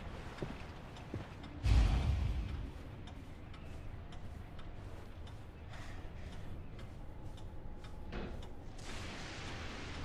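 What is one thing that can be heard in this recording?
Footsteps walk slowly across a wooden floor.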